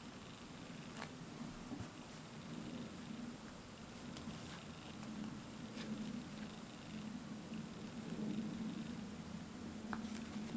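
A crochet hook taps and clicks softly against a plastic board.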